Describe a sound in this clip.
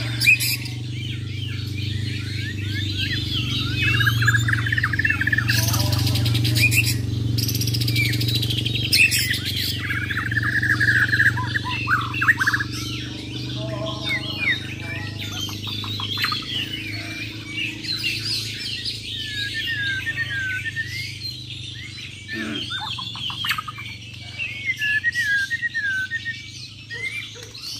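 Caged songbirds sing loud, rapid, varied chirping songs close by.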